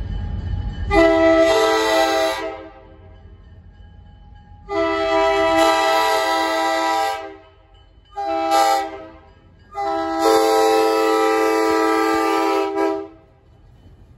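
A train horn blows loud, long blasts close by.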